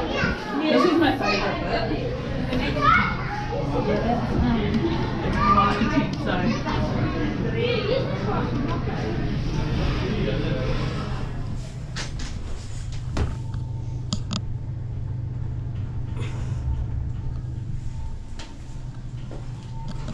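An elevator hums steadily as it rides.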